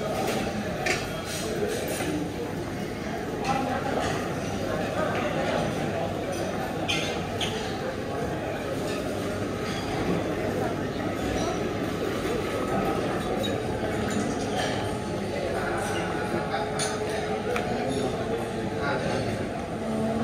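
A crowd of people chatter in a busy room.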